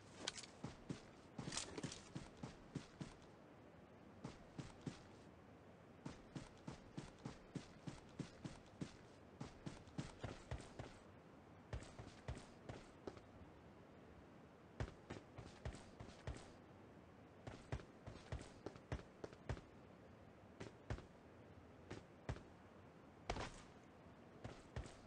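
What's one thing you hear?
Quick footsteps thud over grass and hard ground.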